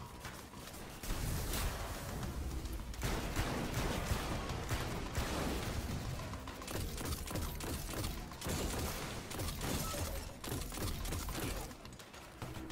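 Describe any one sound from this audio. Heavy explosions boom and crackle.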